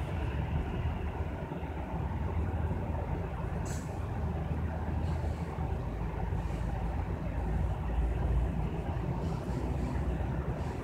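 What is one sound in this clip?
Cars drive past with a low whoosh of tyres.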